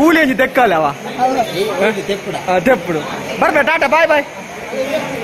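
Men and boys talk and shout nearby in a crowd.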